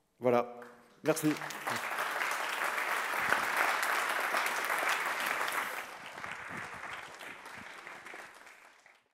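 An audience applauds loudly and then slowly fades.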